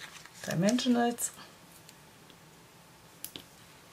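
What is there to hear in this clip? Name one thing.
Paper rustles close by as it is handled.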